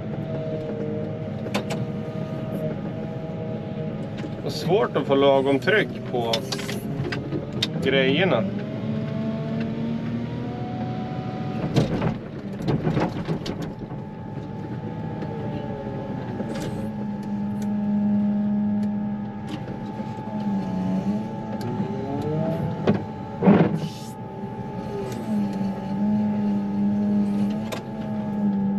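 A loader's diesel engine rumbles steadily close by.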